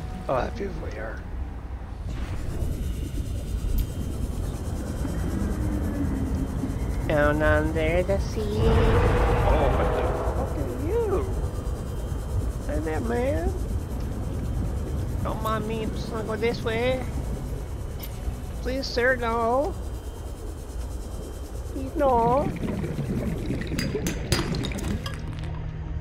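A small submersible hums steadily as it moves underwater.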